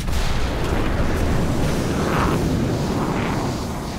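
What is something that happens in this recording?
Fire crackles after an explosion.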